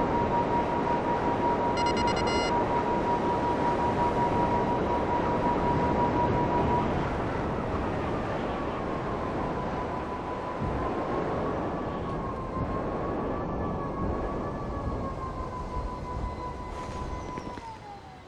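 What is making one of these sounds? A jet aircraft's engine roars.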